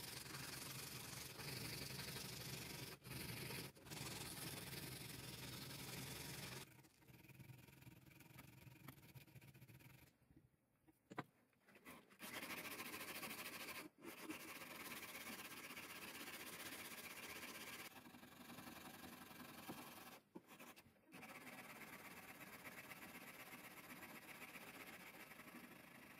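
A metal file rasps back and forth across steel.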